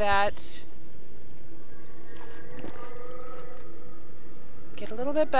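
A woman speaks briefly and casually into a close microphone.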